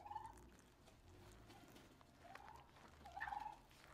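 Milk pours into a bowl with a soft trickle.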